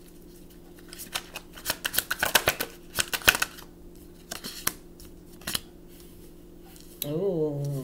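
Playing cards tap and slide onto a wooden table.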